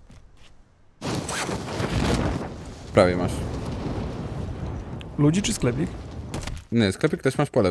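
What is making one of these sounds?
Wind rushes loudly past during a parachute descent.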